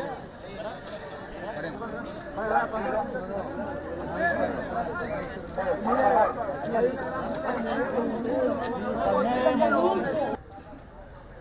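A crowd of men shouts and clamours close by.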